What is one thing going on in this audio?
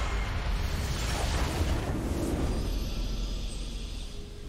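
A triumphant fanfare plays.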